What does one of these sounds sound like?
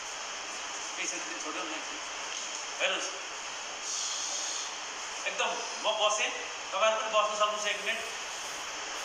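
A man speaks calmly and slowly in an echoing room.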